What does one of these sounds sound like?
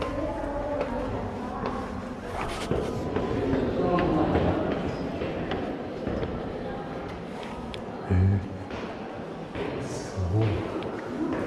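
Footsteps climb metal stairs.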